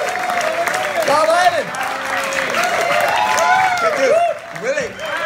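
An audience cheers and claps in a room.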